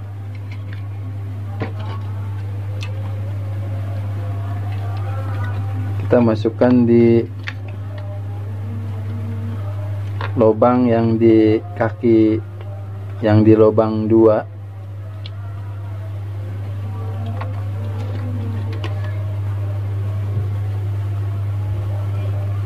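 Wires rustle and click as hands handle a circuit board.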